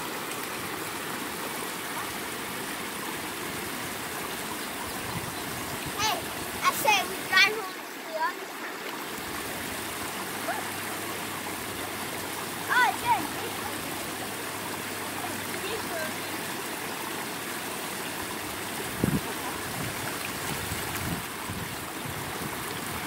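Water rushes steadily over a low weir.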